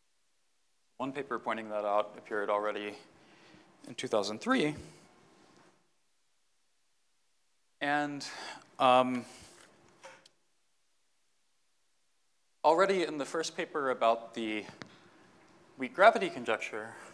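A man lectures calmly through a microphone, speaking in short bursts with pauses.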